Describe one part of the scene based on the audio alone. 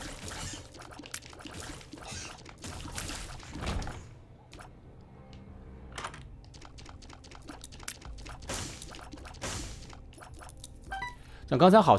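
Video game shots pop and splat in quick bursts.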